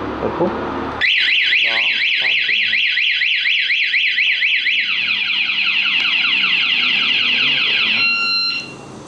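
A motorcycle alarm siren wails loudly with rapid rising and falling sweeps.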